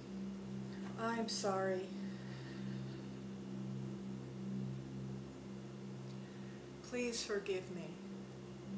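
A young woman speaks softly in short bursts close by.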